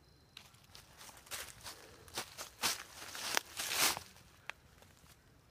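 Dry leaves crunch and rustle underfoot.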